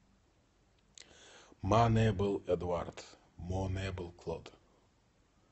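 A man speaks calmly and close to a phone's microphone.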